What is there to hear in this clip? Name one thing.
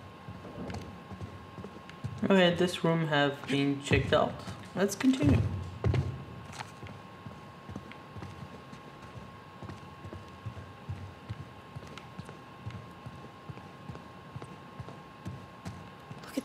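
Footsteps walk slowly across a wooden floor.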